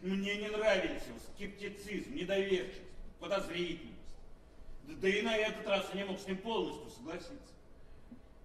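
A middle-aged man speaks loudly and with feeling on a stage.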